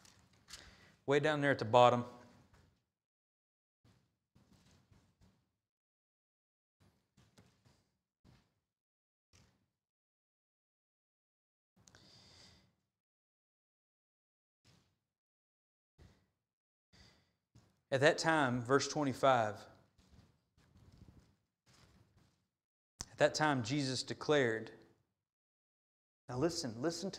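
A man reads out slowly and calmly through a microphone in an echoing hall, with long pauses.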